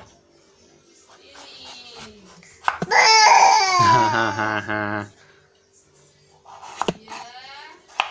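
A knife chops through pumpkin onto a wooden board.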